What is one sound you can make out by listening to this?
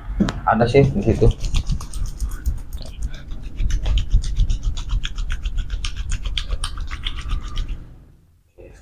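Hands rapidly tap and chop on a man's head.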